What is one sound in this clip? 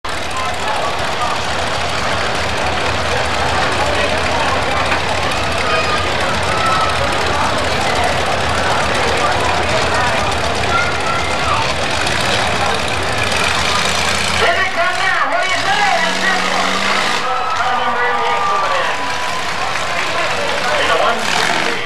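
Car engines roar and rumble loudly.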